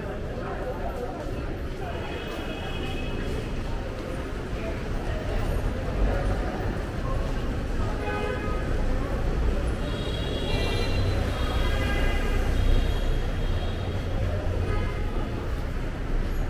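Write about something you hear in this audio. Outdoor traffic rumbles steadily in the background.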